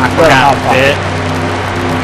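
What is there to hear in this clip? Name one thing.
A race car engine drones steadily.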